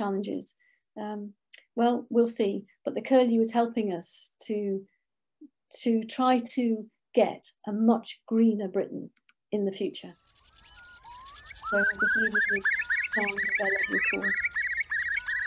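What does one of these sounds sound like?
A young woman speaks calmly over an online call.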